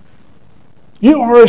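A middle-aged man speaks loudly into a microphone.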